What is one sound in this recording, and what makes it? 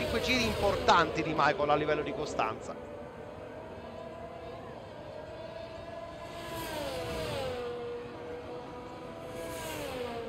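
A racing car engine whines steadily and drops in pitch as it slows.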